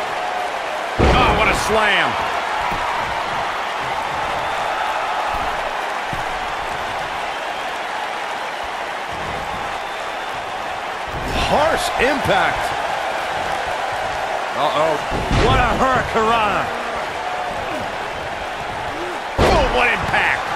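Bodies slam heavily onto a wrestling ring mat with loud thuds.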